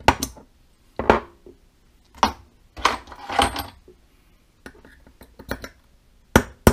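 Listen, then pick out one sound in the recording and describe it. Metal parts clink and clatter as they are handled.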